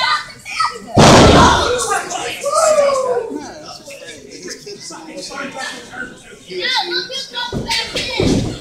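A wrestler's body slams onto the ring mat with a loud thud.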